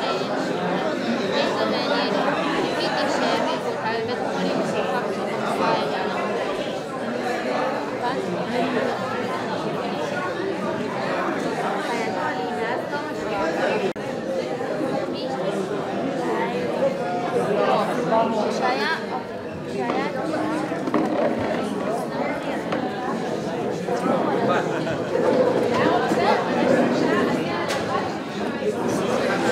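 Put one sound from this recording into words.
A crowd of men and women chatter in a busy room.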